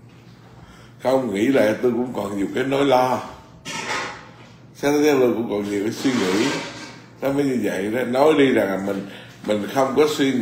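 A middle-aged man speaks calmly and warmly, close to a microphone.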